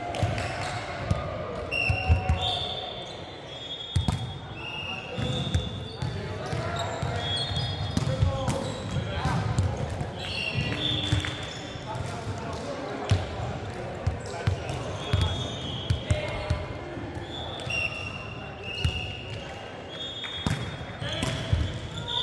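Shoes squeak sharply on a hard floor in a large echoing hall.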